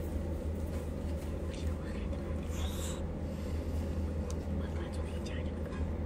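A young woman chews and slurps jelly wetly up close.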